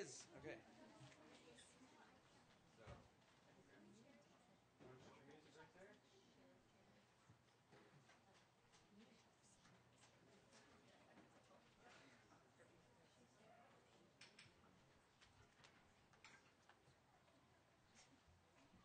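A drummer taps drums and cymbals lightly.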